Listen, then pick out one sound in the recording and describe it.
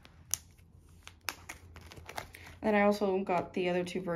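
A stiff binder page flips over with a soft slap.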